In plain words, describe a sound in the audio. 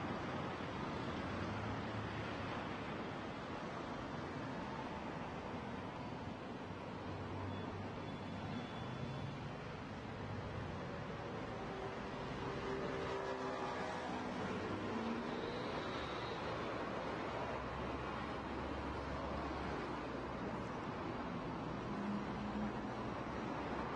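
Tyres roar steadily on a road as a car drives along.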